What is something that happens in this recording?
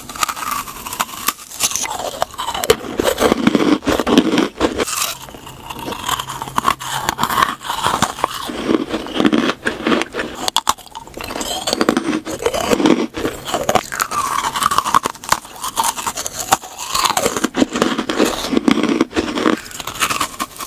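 Crisp sugar sprinkles crunch between teeth.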